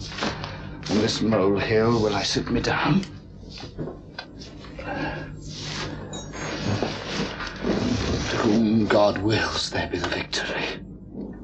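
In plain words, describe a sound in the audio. A young man cries out in anguish.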